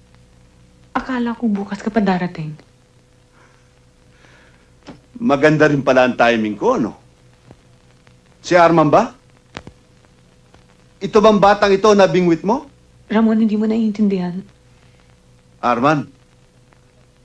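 A younger man answers in short replies.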